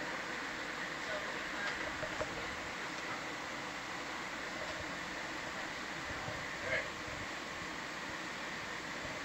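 Underwater vehicle motors hum steadily.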